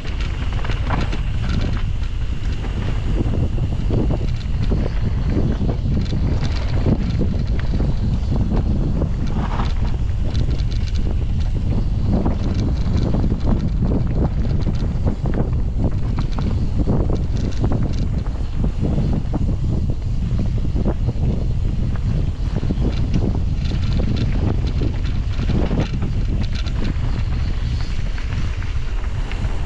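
Bike tyres crunch and rattle over a bumpy dirt trail.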